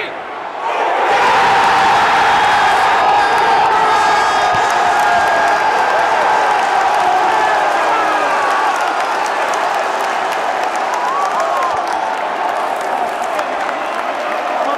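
A stadium crowd erupts in a loud roar of cheering.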